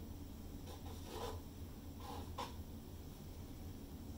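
A plastic cup is set down on a hard surface with a light knock.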